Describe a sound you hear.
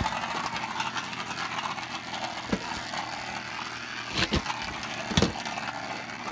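Spinning tops whir and scrape across a hard surface.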